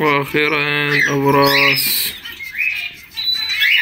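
Small birds chirp and tweet nearby.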